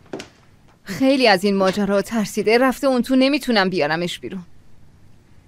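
A young woman speaks with animation nearby.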